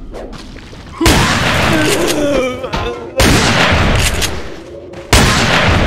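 Explosions boom and roar.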